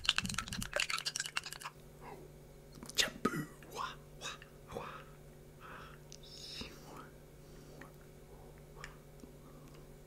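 Chopsticks clink against a glass bowl.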